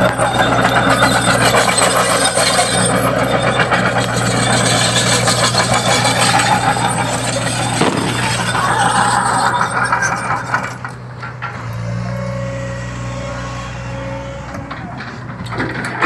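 Excavator tracks clank and grind over dirt.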